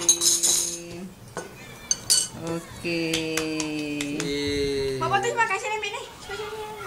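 Several people sing together nearby.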